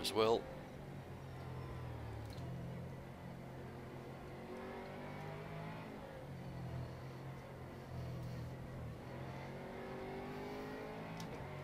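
A racing car engine roars, revving up and down through gear changes.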